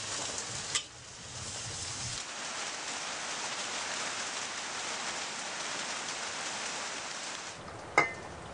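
Heavy rain pours down on a tin roof.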